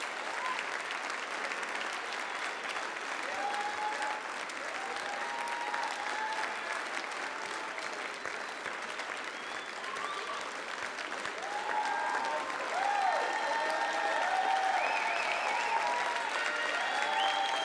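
A crowd cheers and whoops, growing louder.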